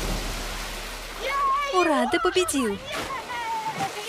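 A body splashes into a pool.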